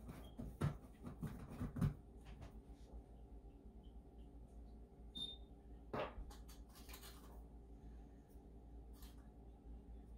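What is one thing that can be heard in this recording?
Utensils clink and scrape against a metal bowl.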